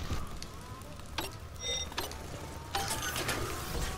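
A hacking device beeps and whirs.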